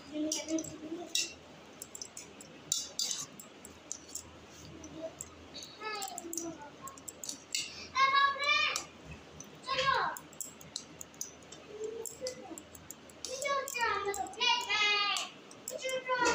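A metal spoon clinks and scrapes against a steel pot.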